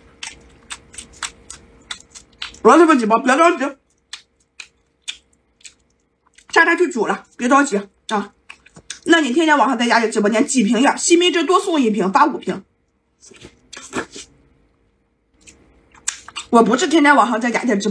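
Food squelches and crackles as hands tear it apart.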